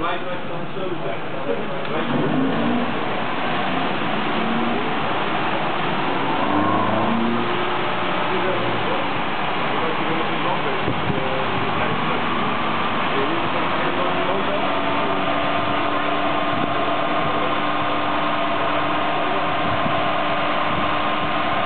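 Car tyres spin on dyno rollers with a rising whine.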